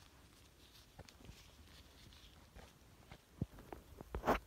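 A plastic bag crinkles softly.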